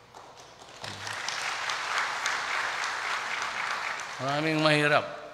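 A crowd in a large hall applauds.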